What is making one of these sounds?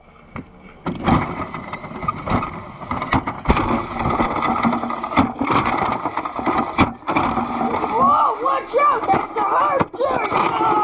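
A toy car's wheels rumble as it rolls across a tiled floor.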